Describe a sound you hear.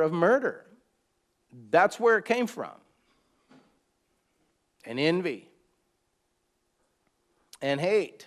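A middle-aged man speaks calmly and slowly close to a microphone, with long pauses.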